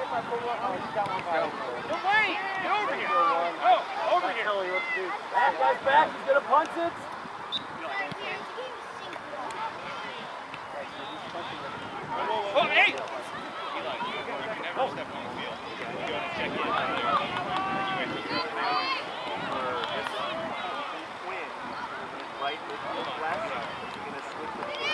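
Spectators and players shout and call out across an open field outdoors.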